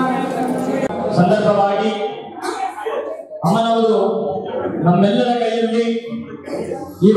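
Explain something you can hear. A young man speaks into a microphone, heard through a loudspeaker.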